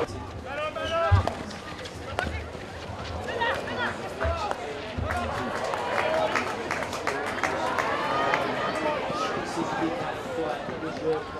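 Hockey sticks strike a ball with sharp clacks.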